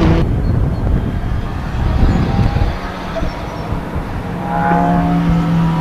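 A racing car engine roars as the car speeds past.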